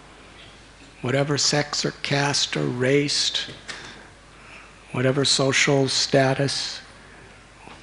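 A middle-aged man speaks calmly into a microphone, in two short phrases with pauses.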